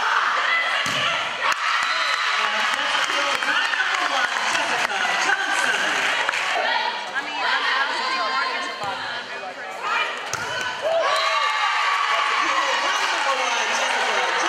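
Young women cheer and shout excitedly.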